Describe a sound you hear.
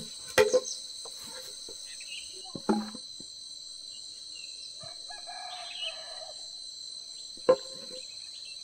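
Bamboo poles knock hollowly against each other.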